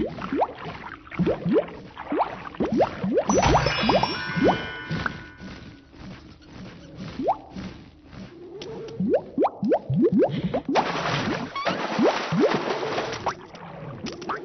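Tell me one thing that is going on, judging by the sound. Quick rising bleeps sound again and again as a game character jumps.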